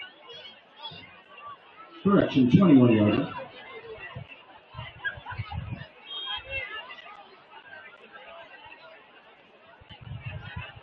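A crowd murmurs at an outdoor game.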